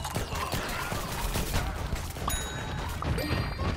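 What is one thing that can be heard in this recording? Game gunfire pops rapidly.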